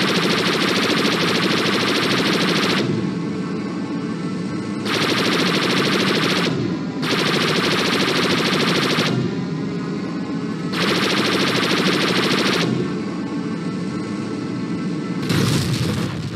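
A fighter craft's engines roar loudly, surging and easing off in turns.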